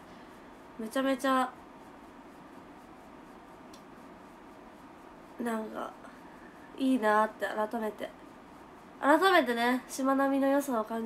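A young woman speaks softly and close to a microphone, in short bursts with pauses.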